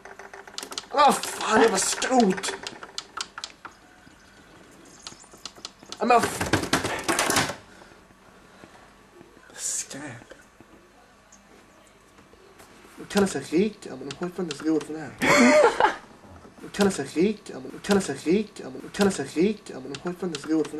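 Buttons click on a cassette player.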